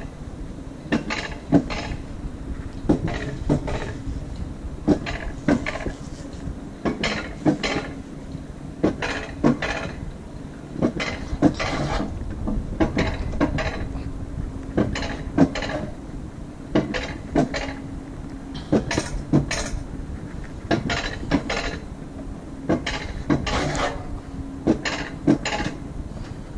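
A sled rumbles steadily along a metal track outdoors.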